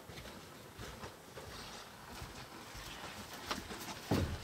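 Footsteps thud on wooden decking.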